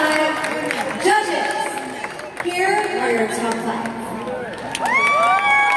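A young woman speaks into a microphone over loudspeakers in a large hall.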